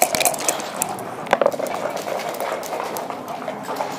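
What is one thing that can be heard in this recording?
Plastic game pieces click as a hand slides them across a board.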